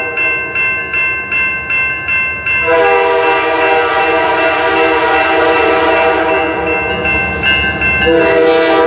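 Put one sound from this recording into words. A railroad crossing bell rings in quick, steady strokes.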